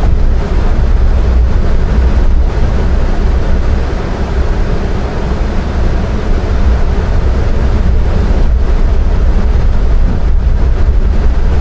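A vehicle engine rumbles steadily while driving slowly.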